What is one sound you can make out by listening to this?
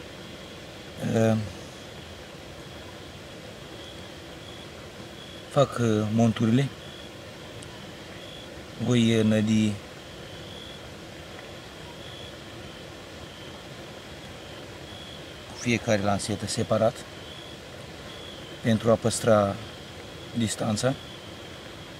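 A middle-aged man speaks calmly close by, in short phrases with pauses.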